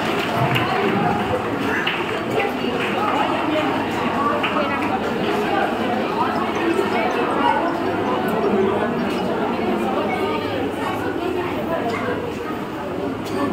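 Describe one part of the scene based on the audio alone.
A young woman speaks into a microphone, heard through loudspeakers.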